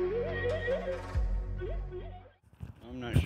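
A wooden flute plays a slow melody up close.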